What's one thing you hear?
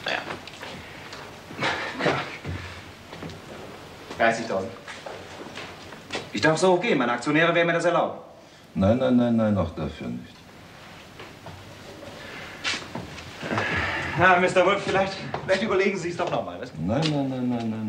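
Another man answers in a calm voice.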